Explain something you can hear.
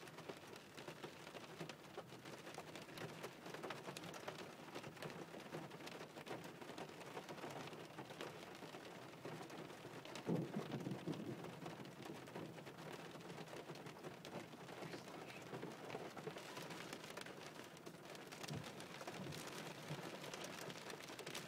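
Rain patters steadily on a car windscreen.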